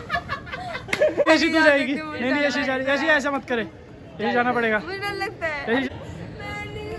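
A young woman laughs and talks close by.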